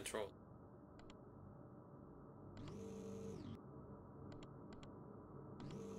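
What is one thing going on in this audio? Control panel buttons beep with short, sharp clicks.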